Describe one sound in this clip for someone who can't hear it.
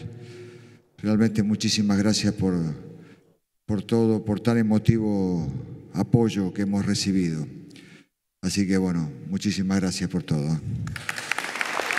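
A man speaks into a microphone to a crowd, loudly and with emphasis, in a large echoing hall.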